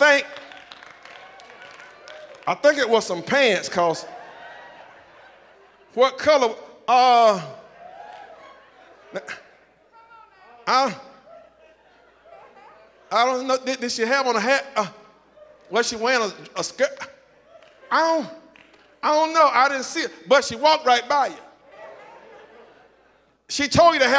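A man preaches with feeling into a microphone over loudspeakers in a large echoing hall, in bursts with pauses.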